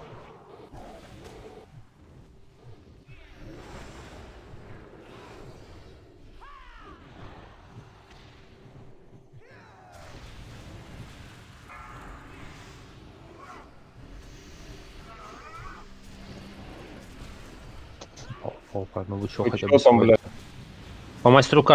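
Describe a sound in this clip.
Fiery spell effects roar and crackle in a battle.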